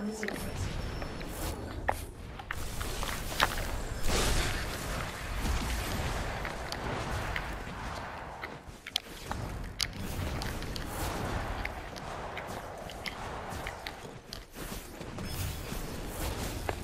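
Video game music and effects play steadily.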